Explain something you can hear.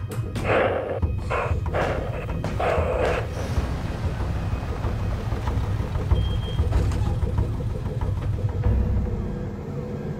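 A van engine rumbles as it drives slowly past.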